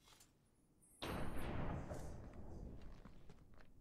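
A sword slides into its scabbard with a metallic scrape.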